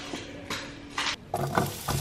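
Chopped onion slides off a board into a pan.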